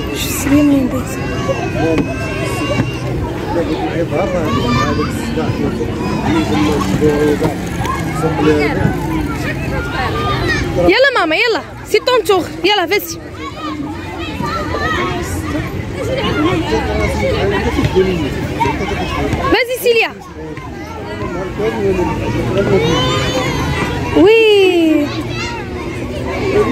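Many children shout and chatter outdoors in a busy playground.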